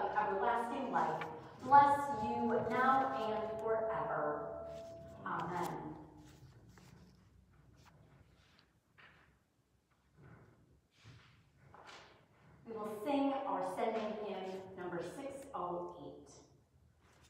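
A woman chants in a clear singing voice in a reverberant room.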